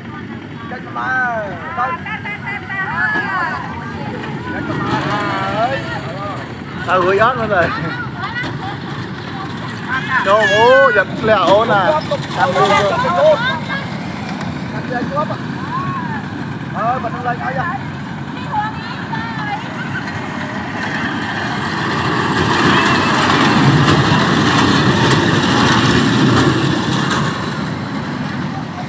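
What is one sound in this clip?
A small ride car rumbles and rattles along metal rails.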